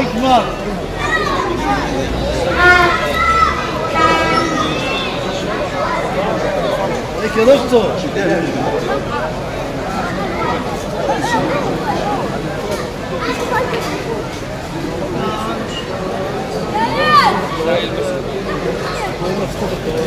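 A man chants in a drawn-out, melodic voice through a microphone and loudspeakers.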